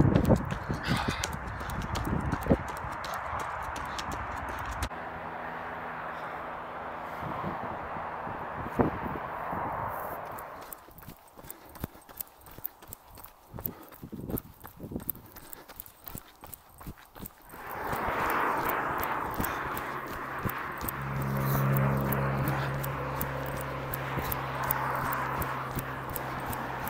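A young man talks breathlessly close to a microphone, outdoors in wind.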